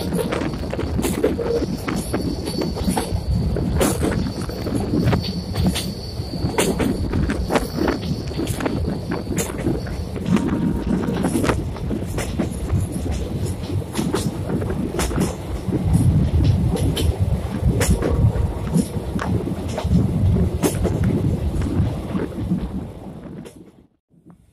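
A passenger train rumbles along over a bridge.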